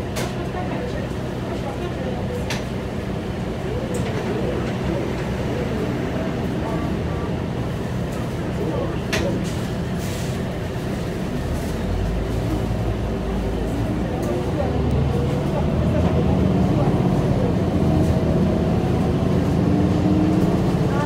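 A bus engine rumbles steadily from inside, growing louder toward the end.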